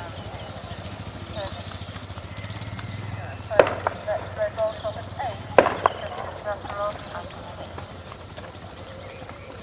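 A horse's hooves thud softly on sand in a steady canter.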